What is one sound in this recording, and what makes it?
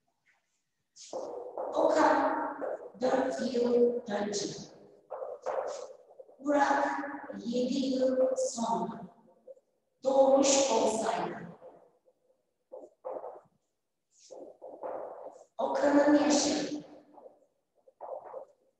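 A young woman speaks calmly nearby, explaining.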